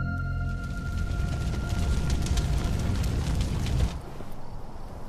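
Fires burn with a low rumble.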